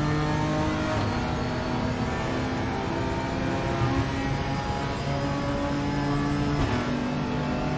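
A gearbox shifts up with a brief drop in engine pitch.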